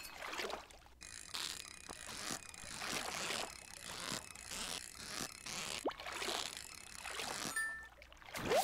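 A fishing reel whirs and clicks steadily as a line is reeled in.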